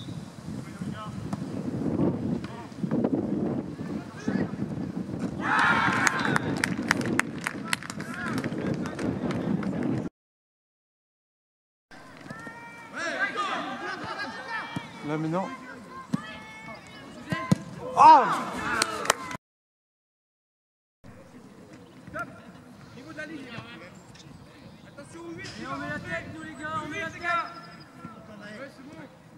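Young men shout and call out from a distance.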